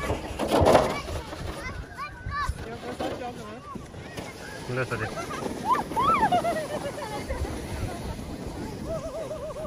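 Children shout and squeal with excitement nearby and in the distance.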